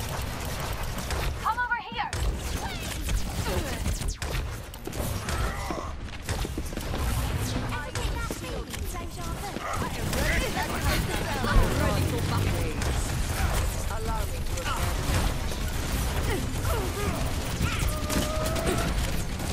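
A game weapon fires rapid energy bursts.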